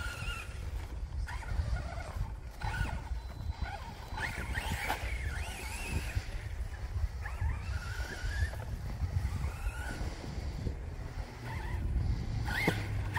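A radio-controlled car's brushless electric motor whines as it speeds across grass.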